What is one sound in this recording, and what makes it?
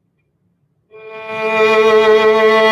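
A violin plays a sustained note.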